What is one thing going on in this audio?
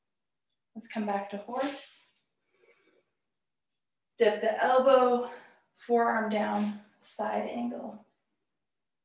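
A woman speaks calmly close to a microphone, giving instructions.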